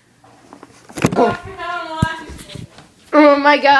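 A young girl speaks with animation close to the microphone.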